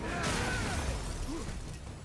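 A heavy blow lands with a deep rumbling thud.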